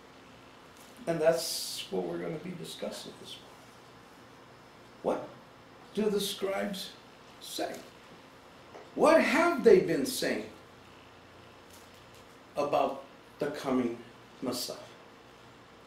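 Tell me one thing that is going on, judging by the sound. An older man speaks calmly and close by, with pauses between phrases.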